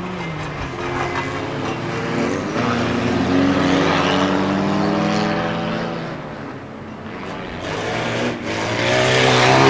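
Several car engines roar and rev loudly as cars race around a track.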